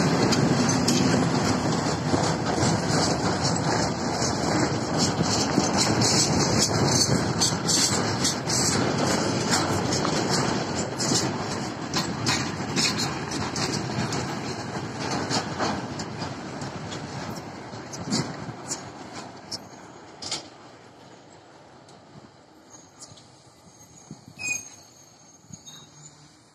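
A freight train rumbles past close by and fades into the distance.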